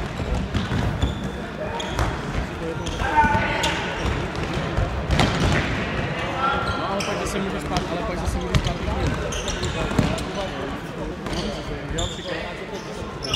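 A ball is kicked with sharp thuds that echo around a large hall.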